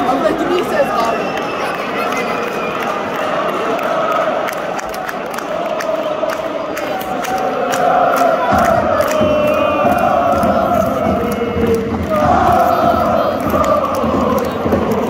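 A large stadium crowd sings and chants loudly outdoors.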